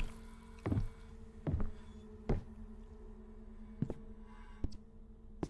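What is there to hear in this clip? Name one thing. Heavy footsteps thud slowly.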